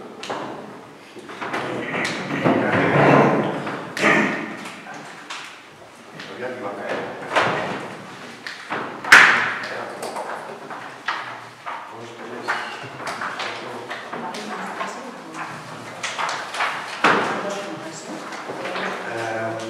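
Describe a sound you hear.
A man talks with animation from across a table.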